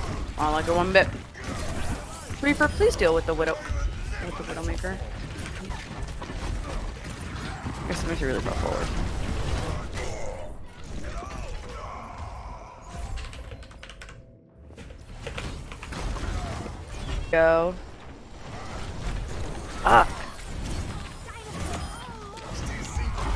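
Gunfire rattles rapidly in a game.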